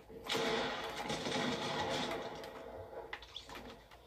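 Gunshots ring out from a video game.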